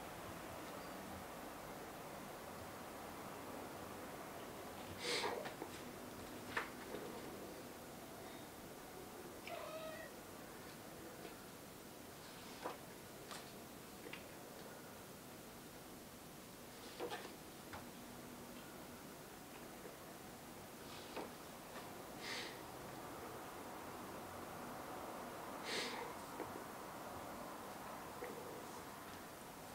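Paper rustles and crinkles softly, close by.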